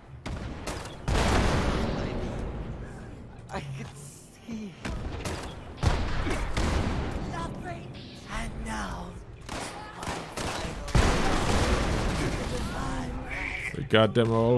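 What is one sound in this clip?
Gunfire and explosions boom from a game.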